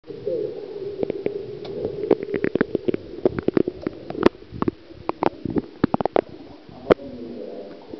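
Bubbles and muffled knocks sound underwater.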